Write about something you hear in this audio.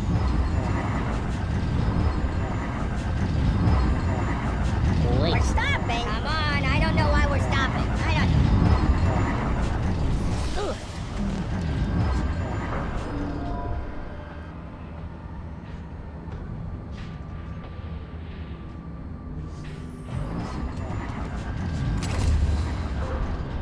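Heavy machinery rumbles and clanks.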